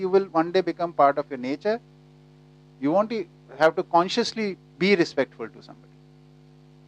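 A middle-aged man speaks calmly and with animation into a microphone.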